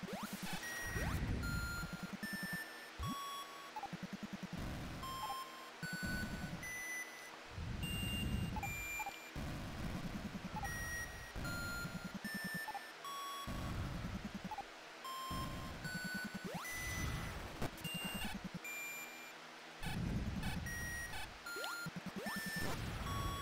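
Retro video game music plays with chiptune beeps and a bouncy bass line.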